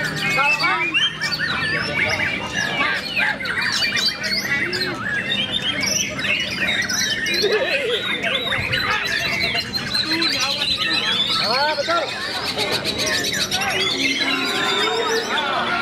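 A white-rumped shama sings a varied, rich song.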